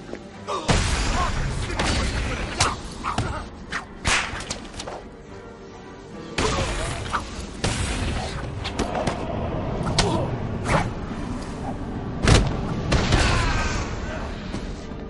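Punches and kicks thud hard in quick bursts.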